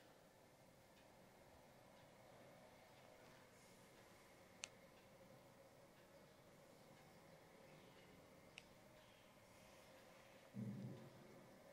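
A small tool scrapes softly against skin close by.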